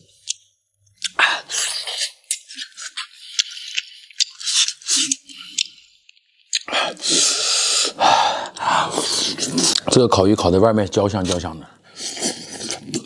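A young man chews and slurps food noisily.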